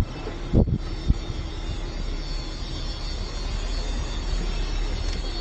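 Wind rushes past the vehicle.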